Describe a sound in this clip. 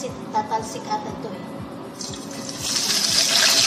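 Batter splashes into a frying pan.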